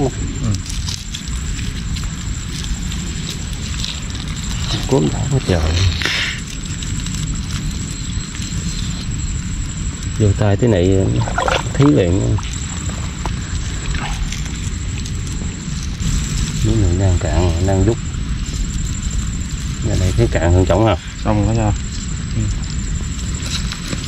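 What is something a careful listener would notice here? Hands dig and scrape through wet sand close by.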